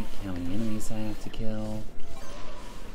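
Cheerful electronic game music plays.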